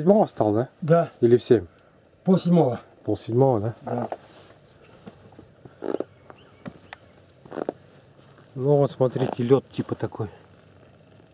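A man talks casually close by, in short bursts with pauses.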